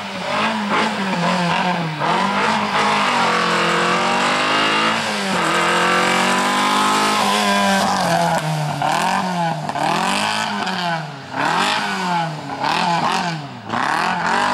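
A car engine revs hard, rising and falling in pitch as the car races by.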